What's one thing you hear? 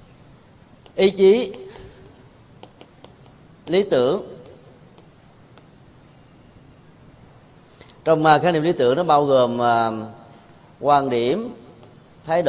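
A man speaks in short, calm phrases in an echoing room.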